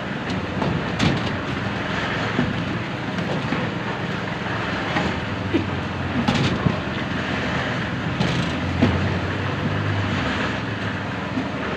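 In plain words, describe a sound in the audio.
A metal bucket clanks down on steel rebar.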